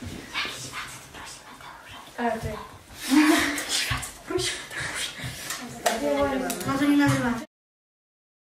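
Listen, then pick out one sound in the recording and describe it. Young girls talk and exclaim excitedly close by.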